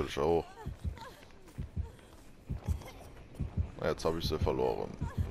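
Quick footsteps thud over the ground.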